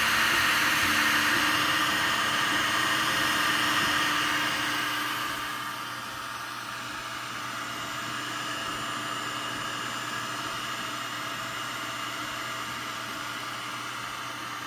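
A cooling fan hums steadily.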